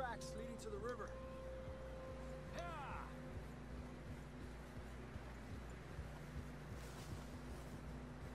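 A horse's hooves thud through deep snow.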